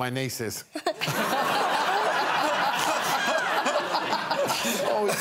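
A boy laughs loudly.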